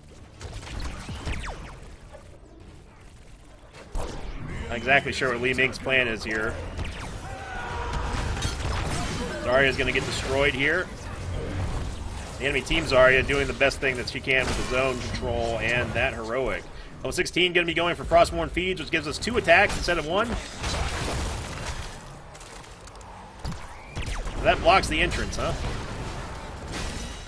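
Game spell effects zap, crackle and burst in quick succession.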